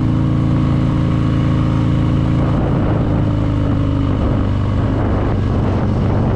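A motorcycle engine rumbles steadily as the bike rides along a road.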